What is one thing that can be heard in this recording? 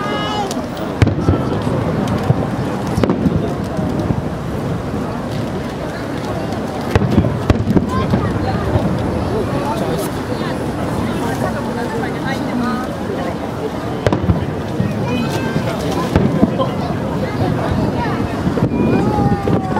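Fireworks burst with loud booms in the distance.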